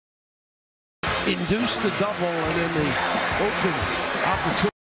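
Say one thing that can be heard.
A large crowd cheers and chants loudly in a big echoing arena.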